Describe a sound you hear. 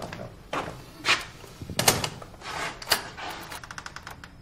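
A door latch clicks and rattles.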